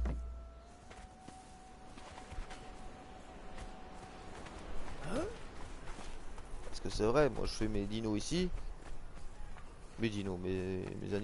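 Footsteps thud quickly on sand.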